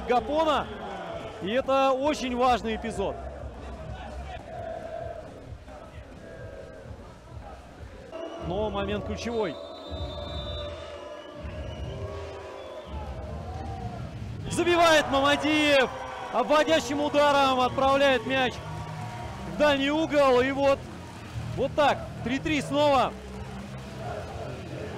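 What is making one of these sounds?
A crowd murmurs and cheers in the stands.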